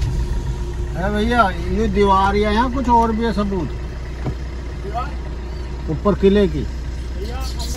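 A man talks inside a car.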